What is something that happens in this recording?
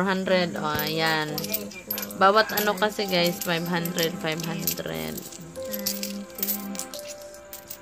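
Single coins tap on a hard surface.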